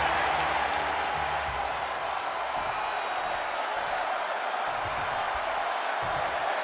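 A large crowd roars and cheers steadily in a big echoing arena.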